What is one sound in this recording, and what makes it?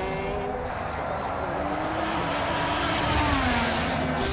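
A racing car's engine roars loudly as it speeds past.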